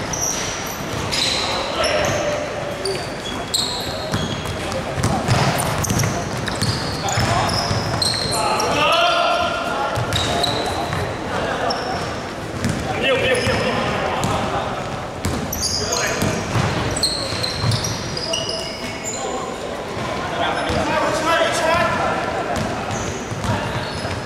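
Young men shout to one another across the court.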